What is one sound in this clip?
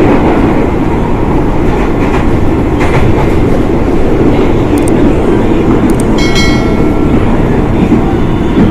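Wind rushes loudly past an open train door.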